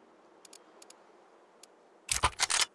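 Soft menu clicks tick as items are picked.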